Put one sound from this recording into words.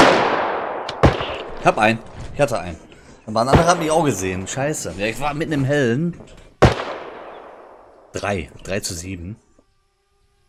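A middle-aged man talks with animation through a headset microphone.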